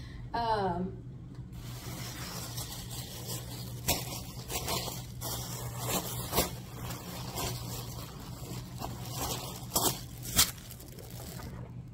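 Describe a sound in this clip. Fabric rustles and flaps as bedding is shaken out close by.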